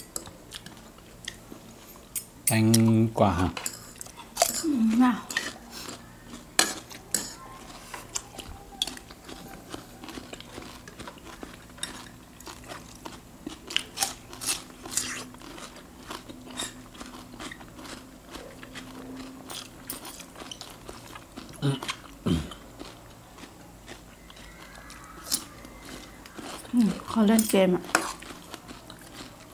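Metal utensils clink against ceramic bowls.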